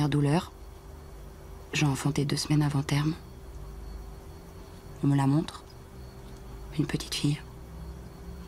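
A woman speaks quietly into a phone in short phrases with pauses.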